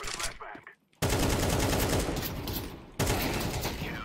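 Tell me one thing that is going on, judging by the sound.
A rifle fires a burst of loud shots.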